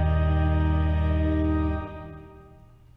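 An organ holds a loud chord, then stops.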